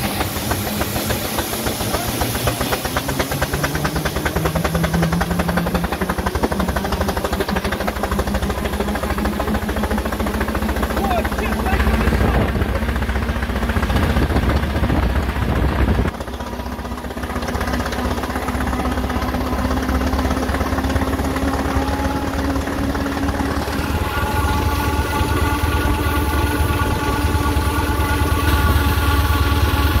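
Wheels rumble over a tarmac road.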